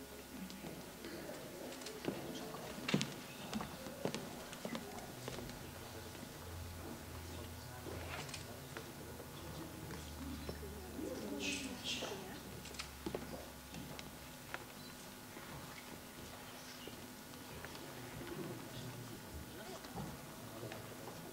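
Several men and women murmur and talk quietly in a large hall.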